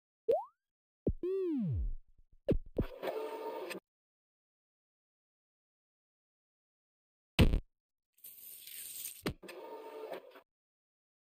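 Short video game sound effects blip, swoop and hiss in bursts.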